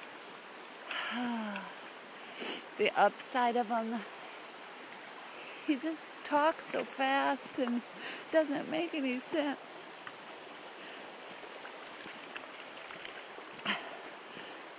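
A river flows and rushes steadily nearby.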